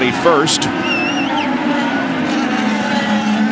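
A race car engine whines loudly as the car speeds past.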